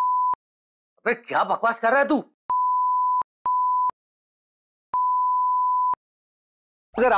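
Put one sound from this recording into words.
A young man talks into a phone with animation.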